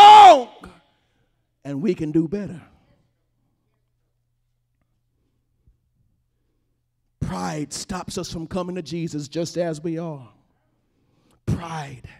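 A man preaches with animation through a microphone, in bursts with pauses.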